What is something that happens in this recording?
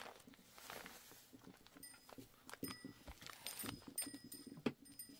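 A small child handles a small box with soft taps and rustles.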